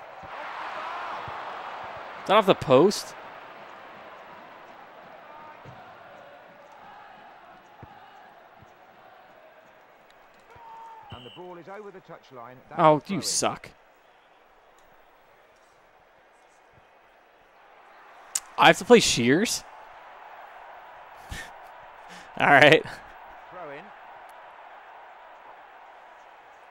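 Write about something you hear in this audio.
A crowd murmurs and cheers.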